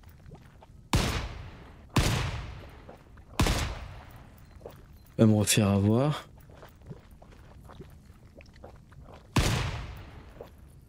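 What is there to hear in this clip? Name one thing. Gunshots crack out sharply, one at a time, with a fading echo.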